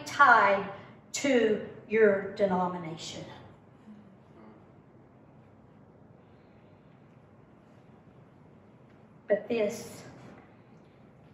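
A middle-aged woman speaks calmly into a microphone, reading out in short phrases.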